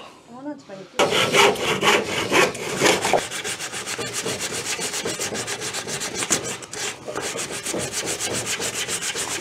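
A man rubs sandpaper rapidly back and forth over wood.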